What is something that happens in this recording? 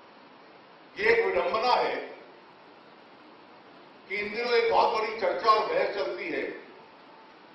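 A middle-aged man speaks with animation into a microphone, in short bursts with pauses.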